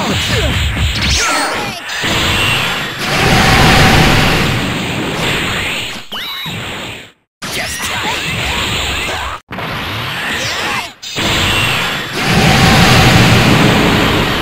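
Punches and kicks land with sharp hits.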